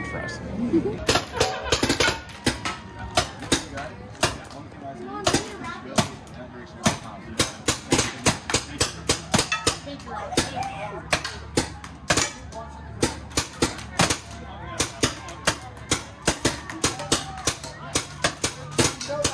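A paintball gun fires sharp popping shots in quick bursts.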